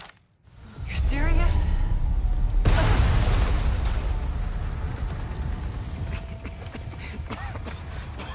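Fire roars and crackles loudly all around.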